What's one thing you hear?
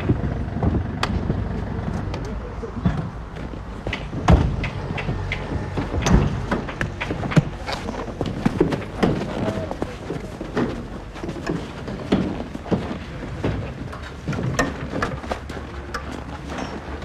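A metal cart rattles and clatters as it is moved.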